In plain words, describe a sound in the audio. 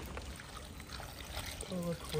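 Water pours from a plastic jug into a metal pot.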